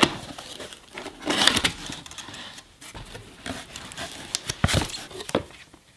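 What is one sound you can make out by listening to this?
Cardboard flaps scrape and rustle as a box is opened.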